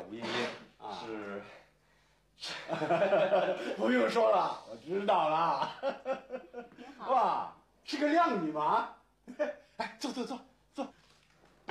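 A younger man laughs and talks warmly.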